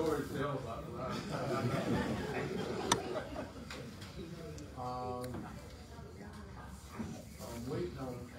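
An elderly man speaks calmly and clearly to a room.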